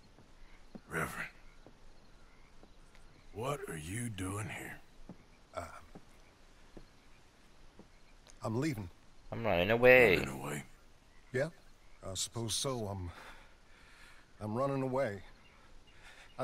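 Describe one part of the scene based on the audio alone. A younger man answers calmly and hesitantly.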